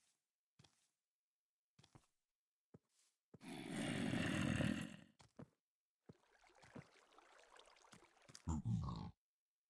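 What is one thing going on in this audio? A game character's fist thuds softly against a block.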